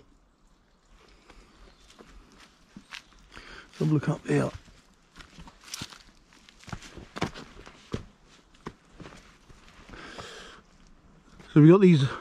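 Footsteps crunch on a leafy forest path.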